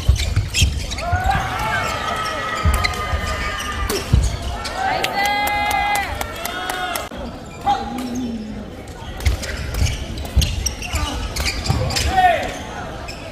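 Shoes squeak sharply on a hall floor.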